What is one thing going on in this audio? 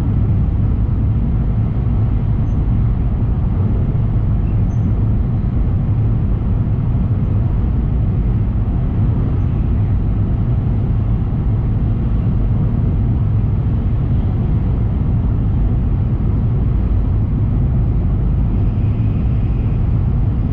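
A train rumbles steadily at high speed, heard from inside a carriage.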